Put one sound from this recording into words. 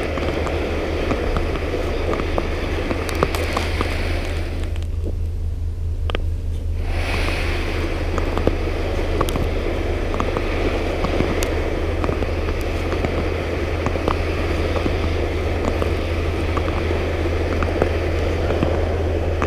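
A ski pole taps on ice.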